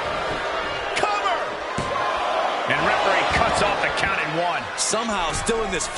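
A referee slaps the mat with a hand.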